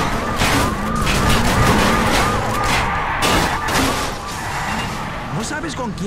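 Tyres screech as a car slides.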